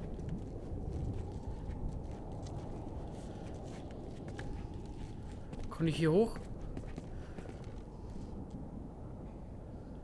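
Footsteps shuffle softly over a gritty floor.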